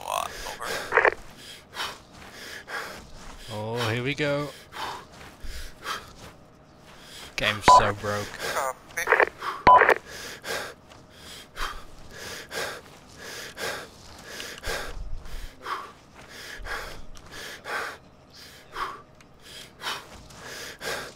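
Footsteps crunch steadily on gravelly ground.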